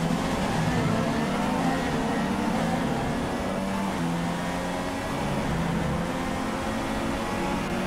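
A racing car engine screams at high revs and shifts pitch as it changes gear.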